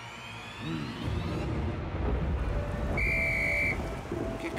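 Heavy rain pours steadily.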